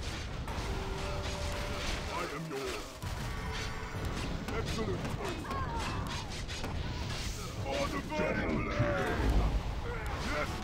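Weapons clash and strike in a busy battle.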